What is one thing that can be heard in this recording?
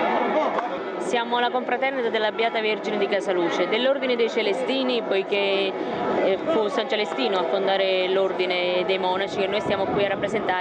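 A woman speaks close to a microphone with animation.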